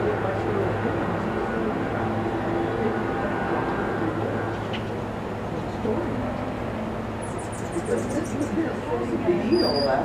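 A hummingbird chirps in short, high bursts.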